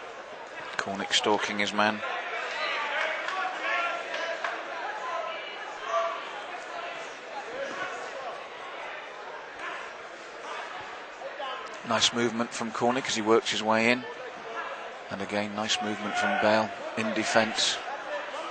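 A crowd cheers and shouts in a large echoing hall.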